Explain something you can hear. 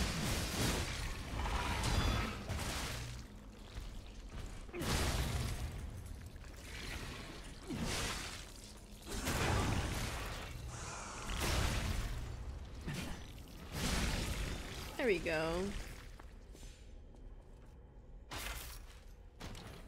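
Heavy sword blows strike and crash repeatedly.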